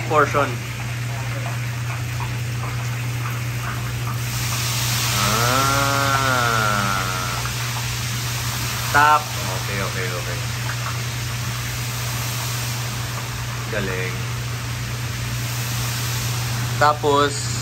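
A man speaks briefly, close by.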